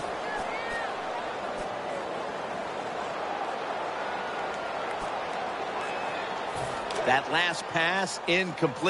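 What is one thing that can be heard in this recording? A large stadium crowd cheers and murmurs steadily.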